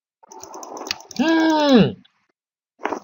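A large dragon growls and roars.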